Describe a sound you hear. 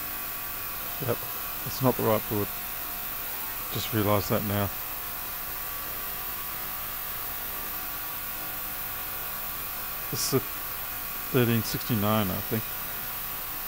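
A man speaks calmly and close into a microphone, in short bursts.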